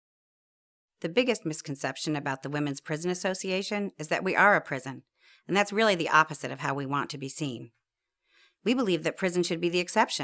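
A middle-aged woman speaks calmly and clearly into a close microphone.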